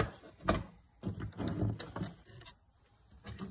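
Fabric rustles and brushes close by.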